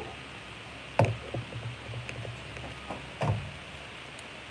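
A plastic jug knocks and clatters as it is handled close by.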